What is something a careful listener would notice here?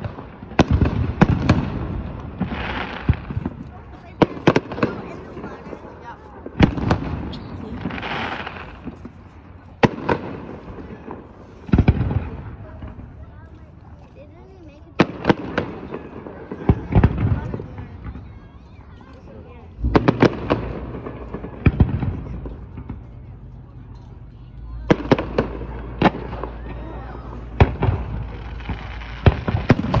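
Fireworks shells burst with sharp booms that echo across water.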